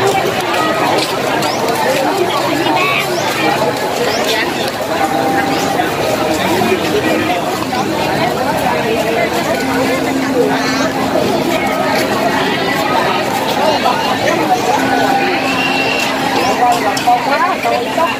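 A crowd of men and women chatters loudly all around, outdoors.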